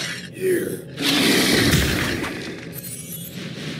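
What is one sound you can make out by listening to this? A cartoon explosion bursts with a puff of smoke.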